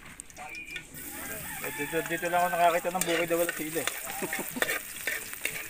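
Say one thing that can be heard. Garlic sizzles in hot oil.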